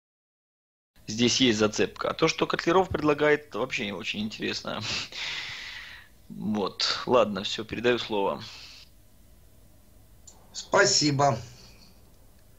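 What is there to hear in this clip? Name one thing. A man talks calmly over an online call.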